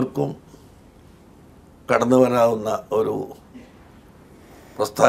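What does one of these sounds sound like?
An elderly man speaks calmly into a small microphone, close by.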